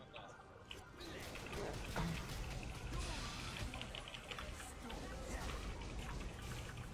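Magic spells whoosh and crackle in a fierce fight.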